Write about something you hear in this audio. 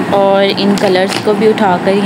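A plastic bag crinkles under a hand.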